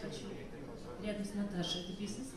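A woman sings into a microphone, heard through loudspeakers.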